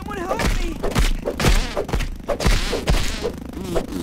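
Heavy blows thud in quick succession.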